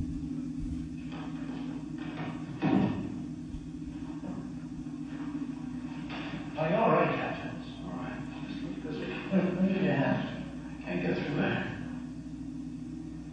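A man speaks through a microphone and loudspeakers in a large hall.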